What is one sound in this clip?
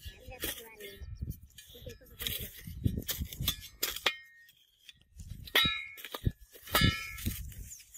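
A digging tool scrapes and thuds into loose soil.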